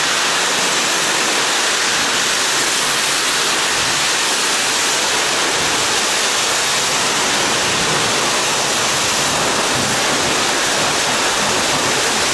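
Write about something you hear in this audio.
A pressure washer sprays water in a loud, steady hiss against a truck, in an echoing hall.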